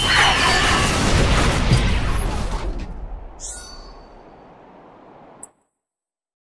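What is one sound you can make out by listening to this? Game battle sounds and music boom loudly, then fade away.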